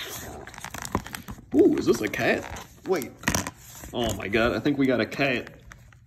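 A thin plastic tray crinkles as fingers pull a chocolate from it.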